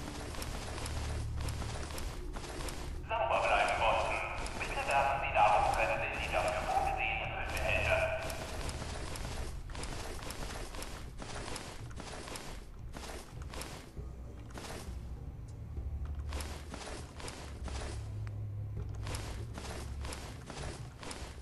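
A game menu ticks with short clicks as items are scrolled through.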